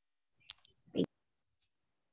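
A man laughs softly over an online call.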